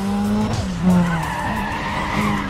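Tyres squeal as a car slides through a turn.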